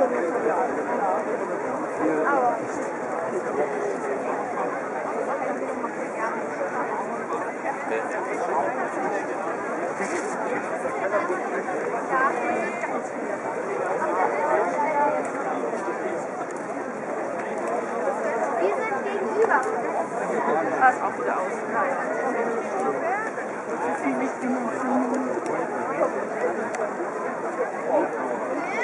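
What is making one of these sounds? A large crowd of men and women murmurs and chatters nearby outdoors.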